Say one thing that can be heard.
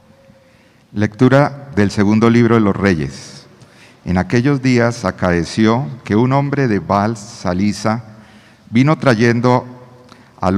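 An older man reads aloud into a microphone.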